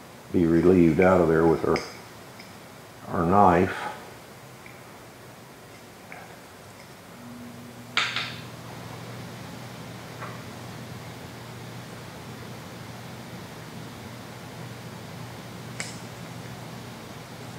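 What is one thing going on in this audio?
A metal tool scrapes and clicks against a metal part.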